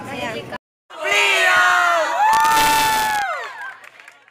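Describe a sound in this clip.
A group of teenagers cheers and screams together.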